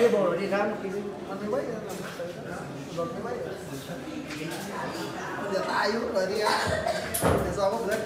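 Men talk casually close by.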